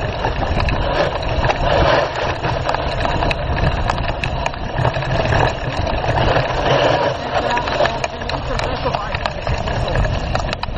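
Wind buffets loudly across the microphone.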